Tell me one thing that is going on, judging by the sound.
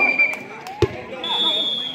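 A man kicks a volleyball with a thump.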